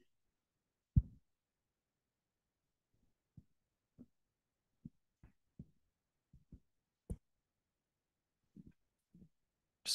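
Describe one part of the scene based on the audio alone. A handheld microphone thumps and knocks as it is handled.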